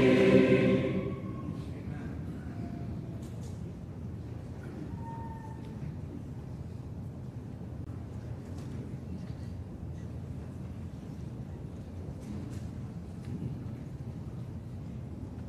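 A large audience murmurs and rustles quietly.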